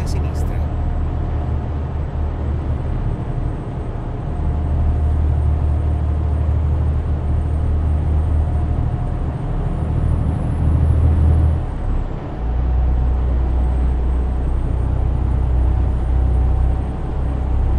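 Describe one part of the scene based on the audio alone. Tyres roll over the road with a steady rumble.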